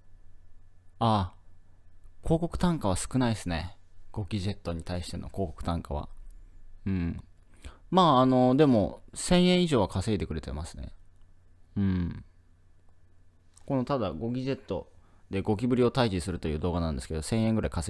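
A young man speaks with animation, close into a microphone.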